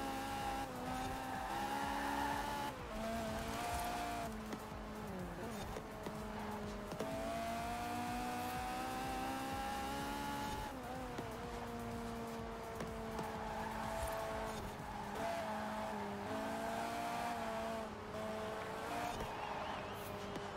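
Tyres screech through corners.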